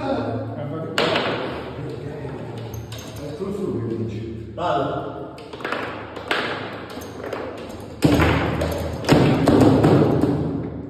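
Foosball rods rattle and the ball clacks against the plastic players.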